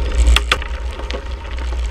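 Mountain bike tyres crunch over loose gravel.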